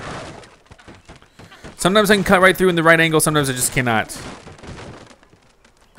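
Wooden blocks crash and clatter as a tower collapses.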